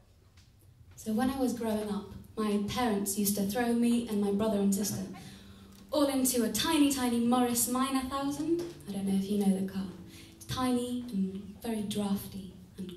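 A woman plays a keyboard.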